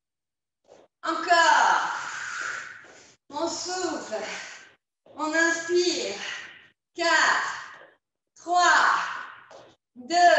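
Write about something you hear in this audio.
A woman talks with animation into a microphone, a little out of breath.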